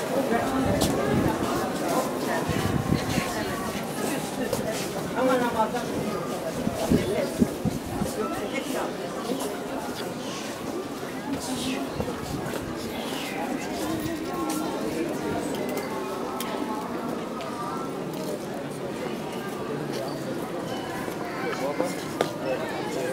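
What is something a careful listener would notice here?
Footsteps shuffle nearby.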